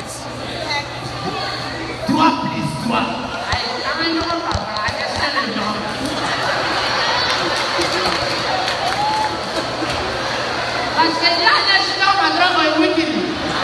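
A crowd chatters and cheers in a large hall.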